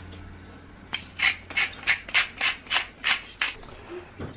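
A salt shaker is shaken rapidly over a pot.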